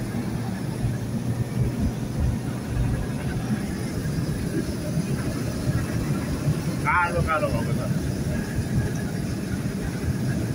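A car drives steadily along a road, with a low rumble inside the cabin.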